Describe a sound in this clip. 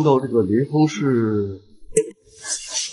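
An elderly man speaks in a low, troubled voice.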